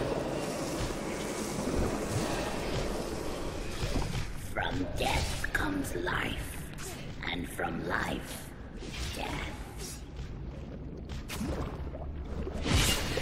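Fire spells crackle and whoosh.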